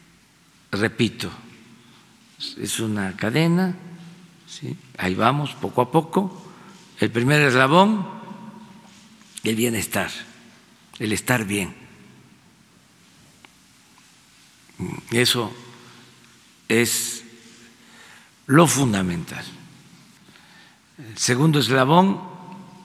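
An elderly man speaks deliberately into a microphone, in bursts with pauses.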